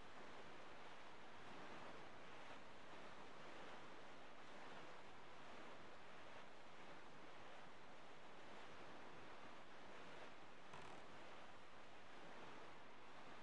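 Wind and waves rush steadily around a sailing boat in a game.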